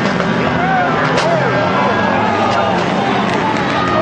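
A race car rolls over and crashes on a dirt track.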